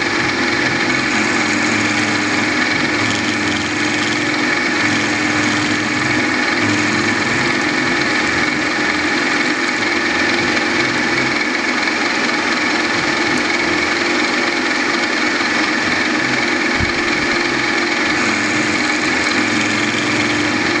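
A milling machine spindle whirs steadily.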